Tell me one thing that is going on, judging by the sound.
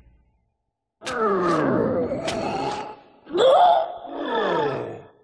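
A monstrous creature roars and growls loudly.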